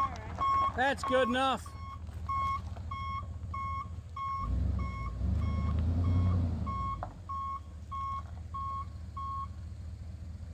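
A truck's reversing alarm beeps steadily.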